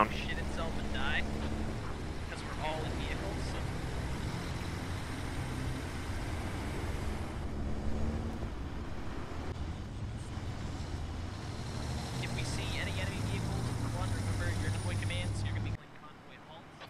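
A heavy vehicle's engine rumbles steadily as it drives.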